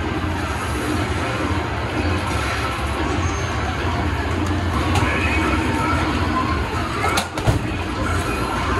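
Arcade game machines play loud electronic music and jingles throughout.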